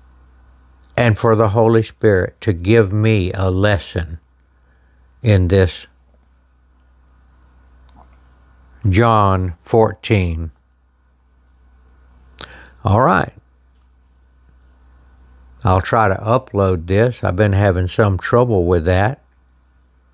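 An elderly man reads aloud slowly and calmly, close by, with pauses between phrases.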